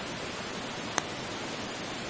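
A putter taps a golf ball with a short click.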